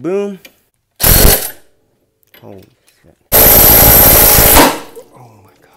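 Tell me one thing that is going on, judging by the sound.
A cordless impact wrench rattles in short, loud bursts.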